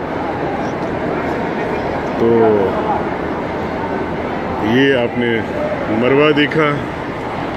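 A large crowd murmurs in a big echoing hall.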